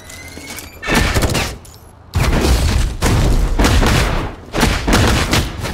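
Sword slashes and energy blasts clash in bursts.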